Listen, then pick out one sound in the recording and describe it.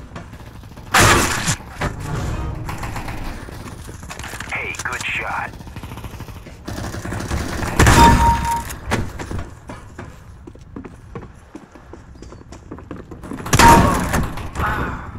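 Gunshots blast loudly a few times.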